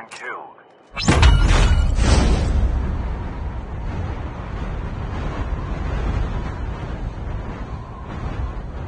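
Wind rushes past in a fast gliding dive.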